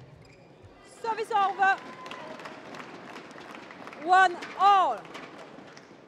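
A young woman shouts loudly in an echoing hall.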